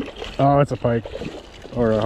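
A fish splashes at the water's surface.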